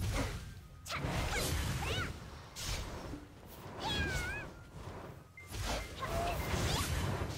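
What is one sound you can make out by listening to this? Magic spell effects whoosh and burst in quick bursts.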